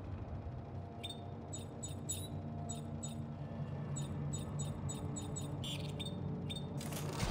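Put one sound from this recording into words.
Short electronic beeps and clicks sound in quick succession.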